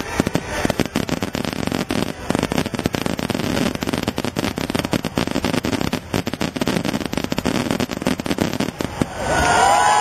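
Fireworks crackle and sizzle overhead.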